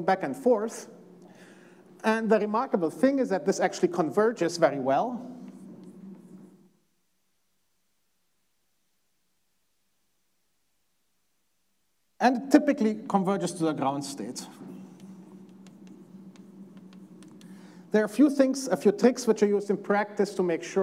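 A man lectures calmly.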